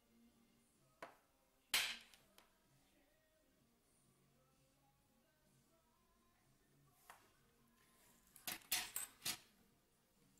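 Small objects click and knock against a hard surface.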